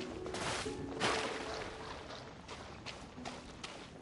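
Water splashes underfoot.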